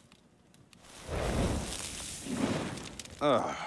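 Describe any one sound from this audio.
Flames burst up with a loud whoosh.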